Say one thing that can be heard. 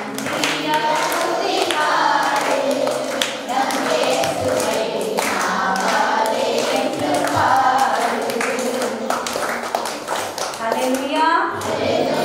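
Children sing along together.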